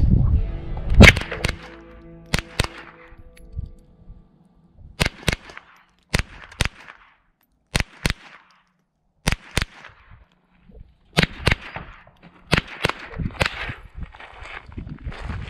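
A small-calibre rifle fires single sharp shots outdoors, spaced irregularly.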